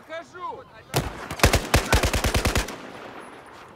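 A rifle fires a rapid burst of shots close by.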